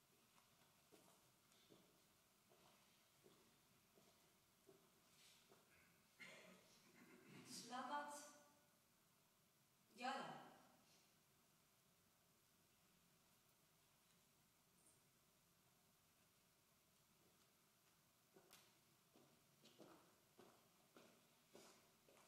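A woman's footsteps tap on a wooden floor in a large echoing room.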